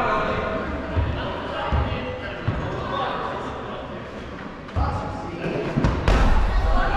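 A ball is struck with a sharp thud.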